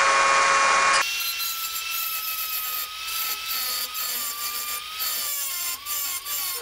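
A rotary tool grinds and scrapes against metal.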